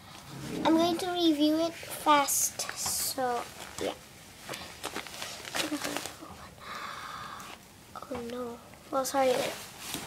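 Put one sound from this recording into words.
Plastic crinkles and rustles as hands handle a pouch.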